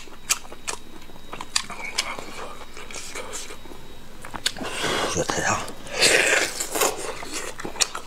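A man chews braised meat close to the microphone with wet smacking sounds.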